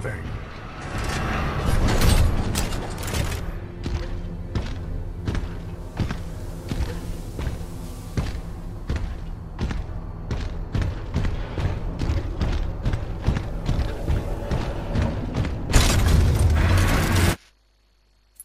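Heavy metal footsteps thud and clank in a steady rhythm.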